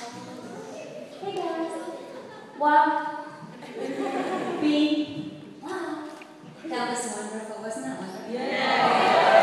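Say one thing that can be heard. A woman speaks with animation to a group of children.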